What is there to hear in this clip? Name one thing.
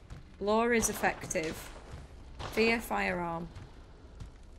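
A young woman speaks with animation through a microphone, close by.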